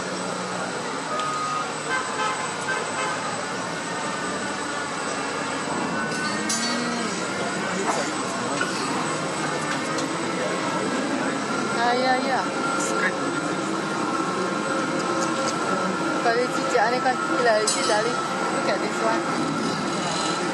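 An electric towing locomotive hums as it rolls along a rail track.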